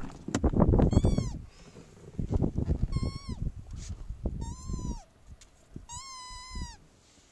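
A small dog whines in short, high cries.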